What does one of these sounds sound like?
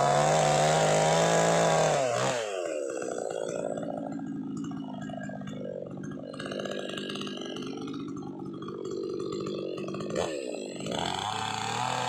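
A chainsaw engine roars at high speed, then drops to a rattling idle.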